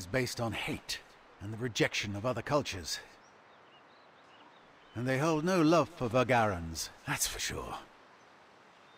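A man speaks calmly and earnestly, close by.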